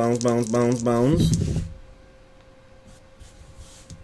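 Dice clatter onto a tabletop.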